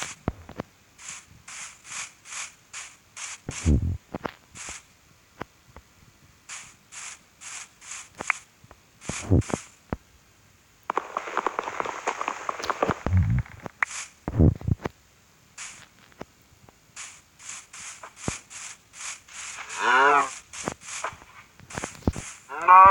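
Footsteps crunch on grass in quick, even steps.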